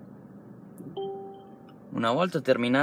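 A car's parking sensor beeps steadily.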